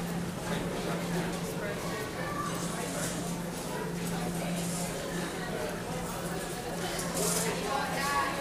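A middle-aged man talks close to a microphone.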